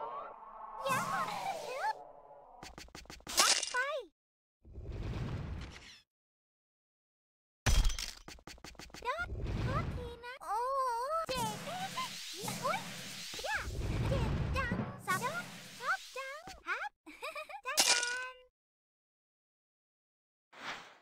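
Playful game sound effects chirp, bleep and whoosh in quick bursts.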